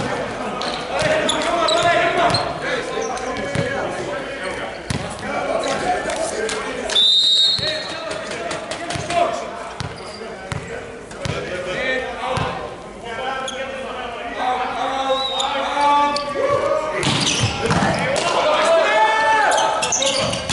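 Men talk and call out across a large echoing hall.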